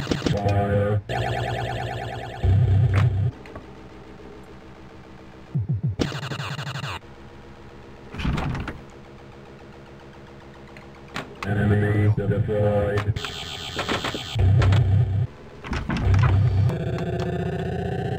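Electronic pinball bells, bleeps and music play in bursts.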